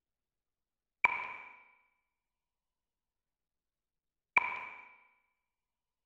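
A short bright chime rings twice.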